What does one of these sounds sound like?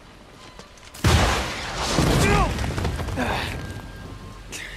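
A loud blast booms and rumbles.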